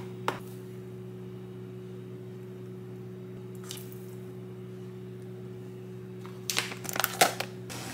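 A spoon scrapes thick paste in a plastic tub.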